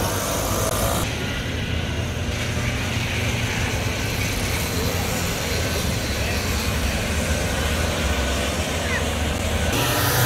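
Kart engines drone far off across the track.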